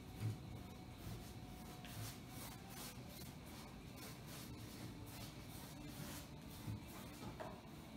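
A paintbrush dabs and scrapes softly against a canvas.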